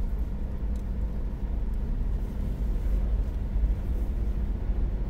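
A car engine hums low and steady from inside the car as it rolls slowly forward.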